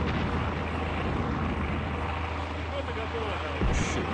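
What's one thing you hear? A propeller plane drones overhead.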